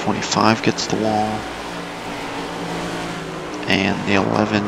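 Race car engines roar at high speed.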